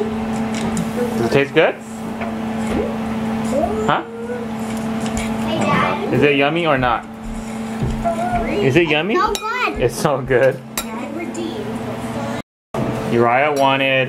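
A young boy talks nearby between mouthfuls.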